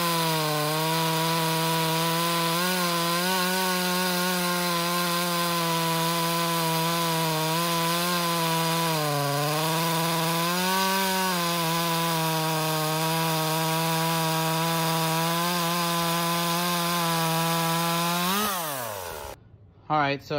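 A chainsaw engine drones loudly as it cuts through a log, then winds down and stops.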